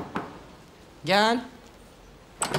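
A woman calls out briefly.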